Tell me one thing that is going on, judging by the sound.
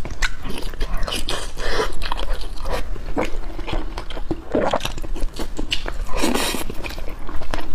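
A young woman slurps food close to a microphone.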